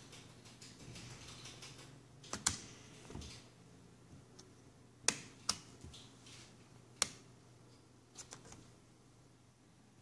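A screwdriver clicks against small parts as a memory module is removed.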